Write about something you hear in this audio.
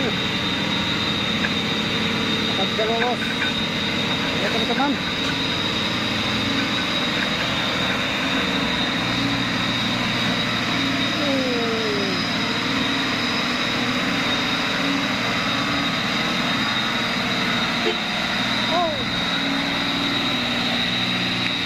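A heavy truck engine rumbles and labours as the truck drives slowly closer.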